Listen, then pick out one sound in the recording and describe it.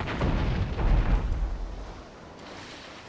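Cannons fire from a ship with heavy booms.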